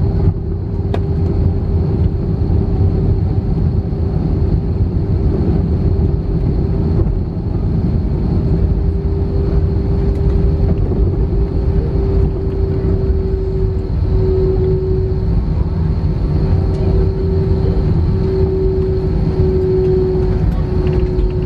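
Wheels rumble on the runway.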